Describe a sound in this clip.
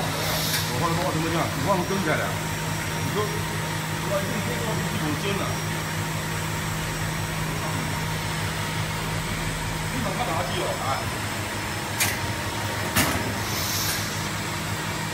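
Factory machines hum and whir steadily.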